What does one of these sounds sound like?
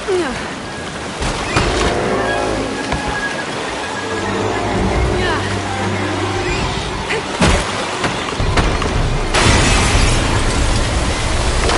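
Waves splash and crash against wooden walls.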